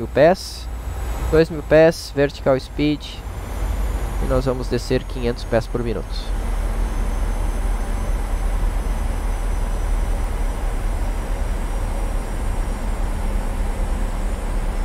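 Aircraft engines drone steadily with a low rumble.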